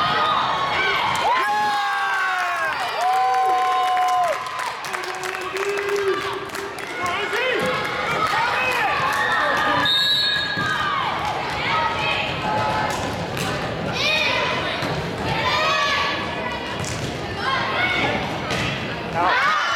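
Young women shout and cheer in a large echoing gym.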